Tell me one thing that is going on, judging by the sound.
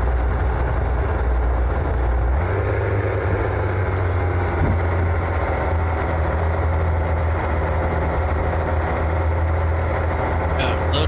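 Tyres crunch over a gravel dirt track.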